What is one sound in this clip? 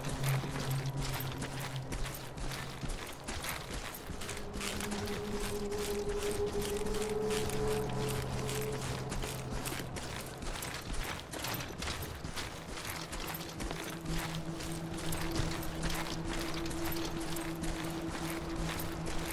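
Heavy footsteps crunch steadily over loose gravel.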